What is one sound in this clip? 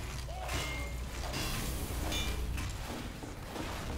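A wrench swings with a whoosh and clanks.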